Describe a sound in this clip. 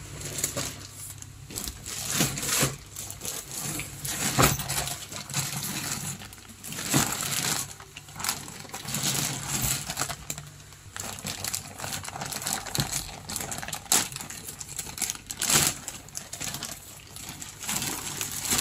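A plastic bag crinkles and rustles as hands handle it.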